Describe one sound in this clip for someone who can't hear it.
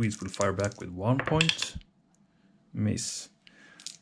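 Dice rattle and tumble in a wooden tray.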